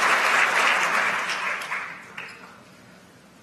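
An audience applauds in a large hall, then the clapping fades away.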